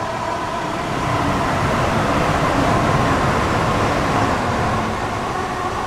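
A passing train rushes by close, swelling and then fading.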